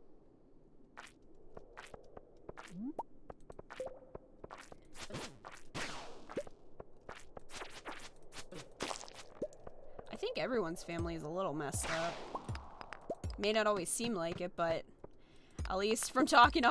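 Short game sound effects click and chime as rocks are broken.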